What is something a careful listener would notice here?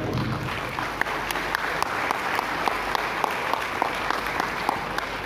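A large crowd claps in a steady rhythm.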